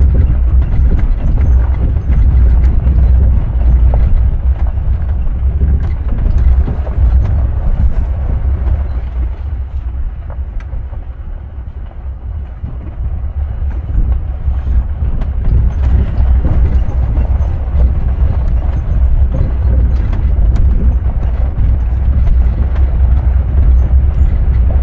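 Tyres crunch and rattle over a rough dirt track.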